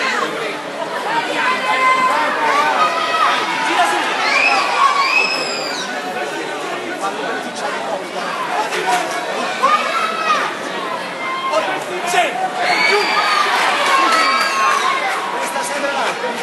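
Spectators shout and cheer loudly during the sparring.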